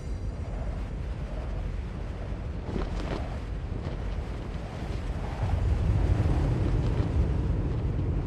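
Large leathery wings unfurl with a deep whoosh.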